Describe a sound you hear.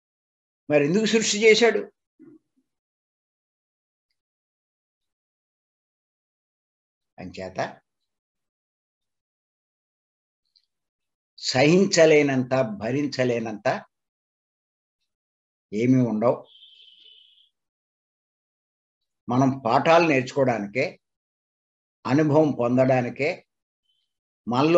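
An elderly man speaks with animation in short bursts over an online call, with long pauses.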